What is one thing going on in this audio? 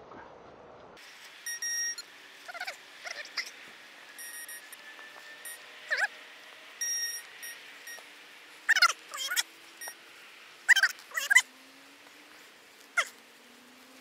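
A metal detector beeps and warbles in high, wavering tones.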